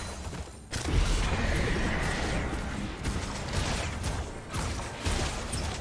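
Blows and spell effects from a video game fight clash and whoosh.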